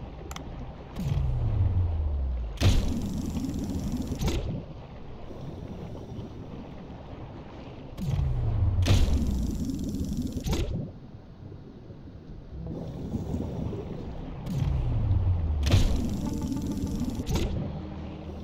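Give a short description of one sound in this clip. A harpoon fires with a sharp whoosh and a falling rumble, again and again.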